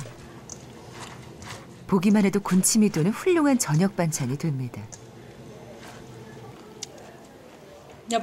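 Hands squelch and mix wet vegetables in a metal bowl.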